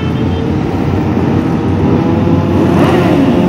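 A sport motorcycle rides past.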